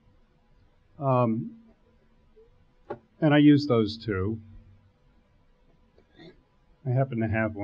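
An older man speaks slowly and calmly into a microphone, with pauses.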